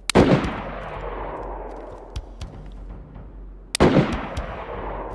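Footsteps crunch on gravel and rubble.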